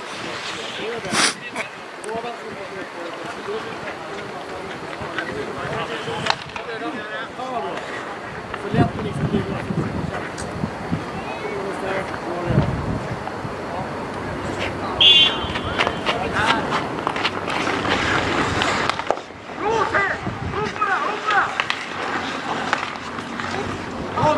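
Men shout to each other across an outdoor rink.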